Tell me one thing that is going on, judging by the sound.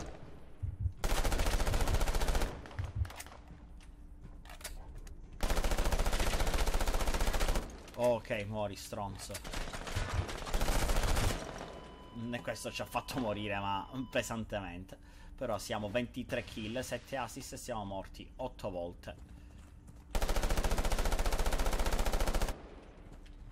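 An automatic rifle fires in rapid, loud bursts.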